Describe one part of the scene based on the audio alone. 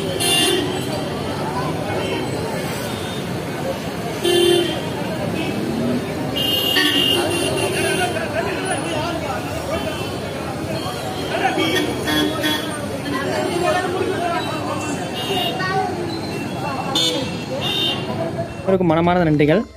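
Motorbikes and cars rumble past on a busy street.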